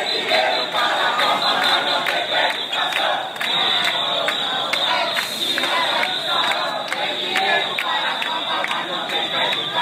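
People in a crowd clap their hands in rhythm.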